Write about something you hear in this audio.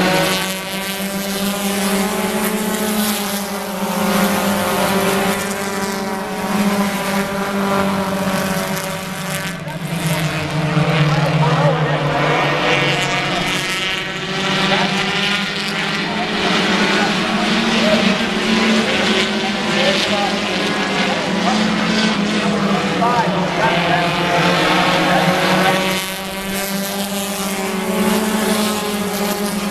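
Race car engines roar loudly as the cars speed around a track.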